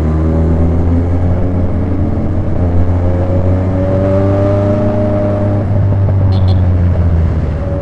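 Wind rushes past as the motorcycle rides.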